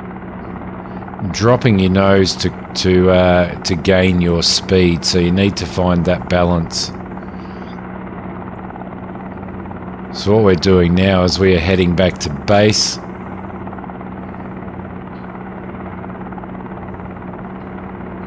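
A helicopter engine drones steadily with a low hum.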